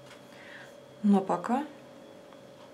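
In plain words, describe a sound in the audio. A young woman speaks briefly and close by.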